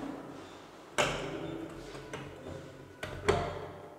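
A hand presses a wall panel shut with a few sharp knocks.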